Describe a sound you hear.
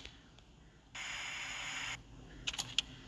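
Television static hisses loudly.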